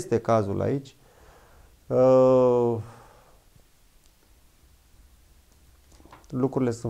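A man speaks calmly and haltingly close by, with long pauses.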